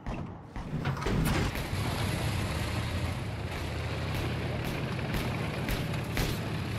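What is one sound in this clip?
A boat engine starts and rumbles steadily.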